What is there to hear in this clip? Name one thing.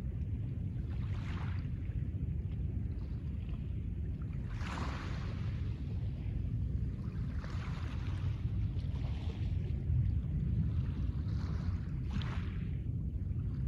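Small waves wash gently onto a pebble shore and draw back over the stones.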